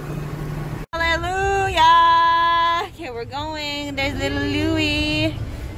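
A young woman sings out loudly and cheerfully close by.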